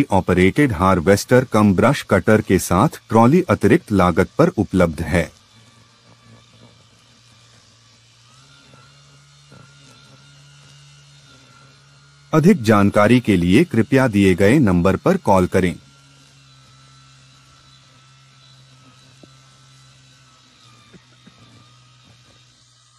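A battery-powered brush cutter hums steadily.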